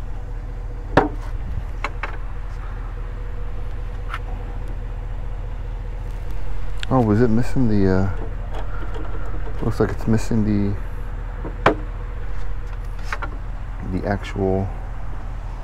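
A hinged wooden lid thumps as it is folded open and shut.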